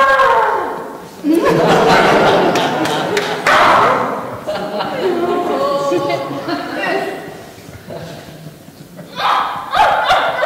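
Feet thump and shuffle on a hard floor.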